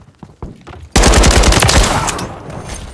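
A rifle fires in a rapid burst.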